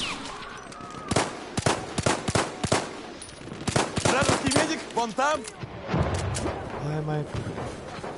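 A pistol fires single sharp shots.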